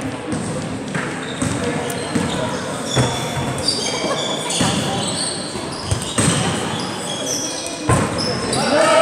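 A basketball bounces on a court in a large echoing gym.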